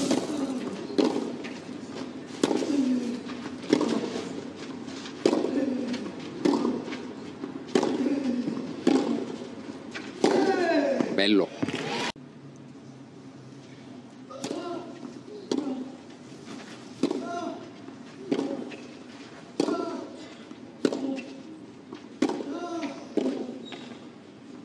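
Tennis players grunt loudly as they hit the ball.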